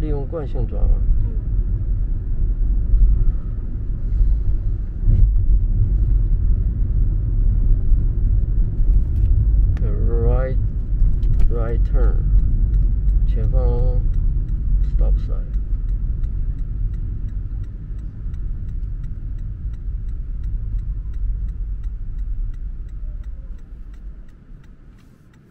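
A car's tyres rumble steadily on the road and fade as the car slows to a stop.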